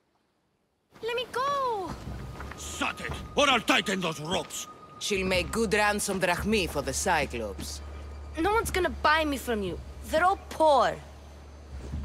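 A young woman shouts in distress.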